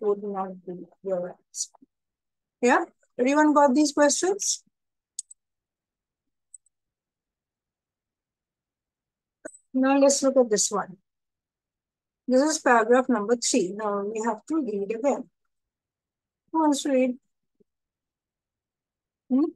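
A woman speaks calmly through a microphone, in short phrases with pauses.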